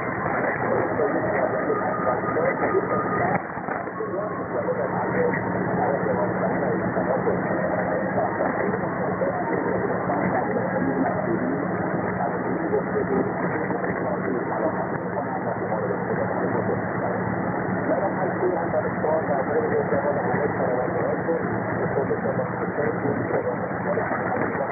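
Radio static hisses and crackles steadily, as through a narrow receiver.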